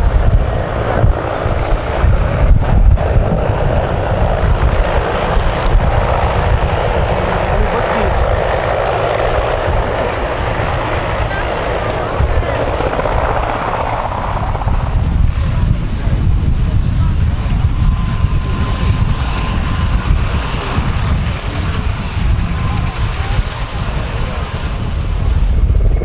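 A helicopter's rotor thumps loudly nearby as it hovers.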